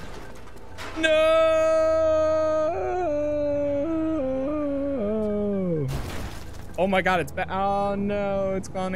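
A young man talks playfully close to a microphone.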